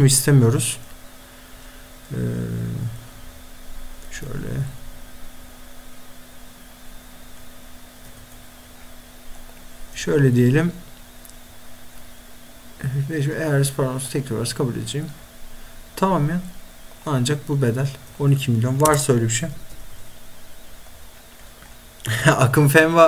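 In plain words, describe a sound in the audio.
A young man talks animatedly and close into a microphone, in short bursts.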